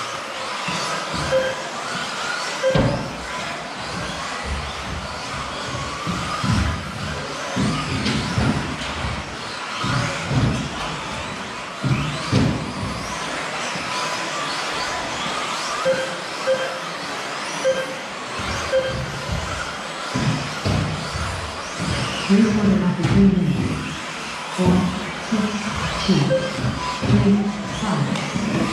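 Small electric model cars whine and buzz as they race around.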